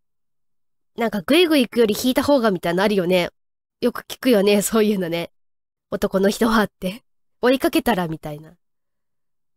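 A young woman speaks brightly and playfully into a close microphone.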